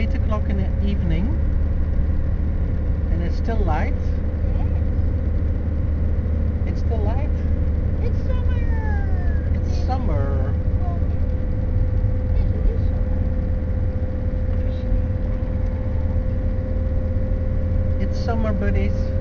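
Tyres rumble over a rough country road.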